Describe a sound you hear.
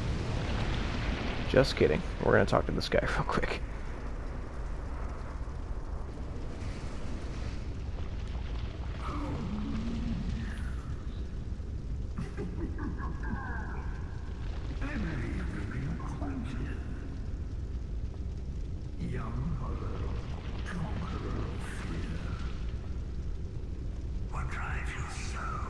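A fire crackles and roars steadily.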